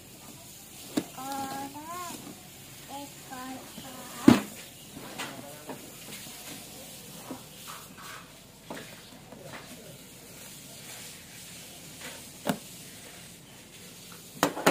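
A cardboard box knocks and scrapes on a plastic table.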